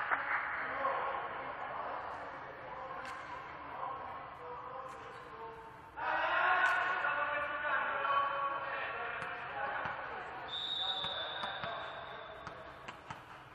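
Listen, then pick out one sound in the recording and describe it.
Young men shout and call to each other in a large echoing hall.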